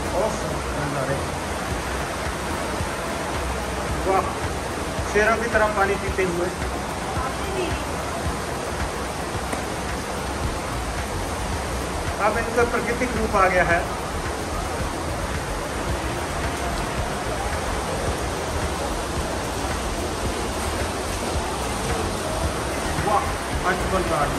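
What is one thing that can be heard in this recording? Water rushes and churns steadily over a weir outdoors.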